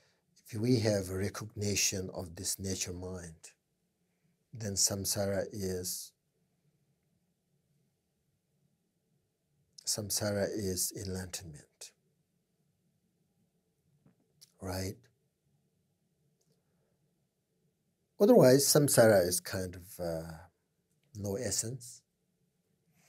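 A middle-aged man speaks calmly into a close microphone, with pauses.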